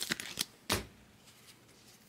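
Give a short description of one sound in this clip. Trading cards click and rustle as a hand handles them.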